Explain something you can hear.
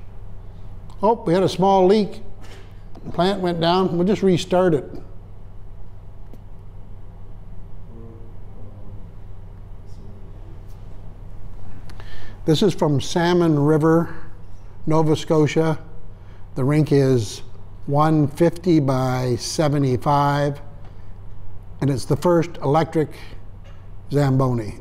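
An elderly man speaks calmly and haltingly, with long pauses.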